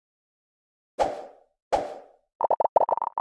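A pin slides out with a quick whoosh.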